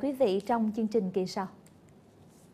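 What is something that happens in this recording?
A young woman speaks brightly and clearly into a microphone.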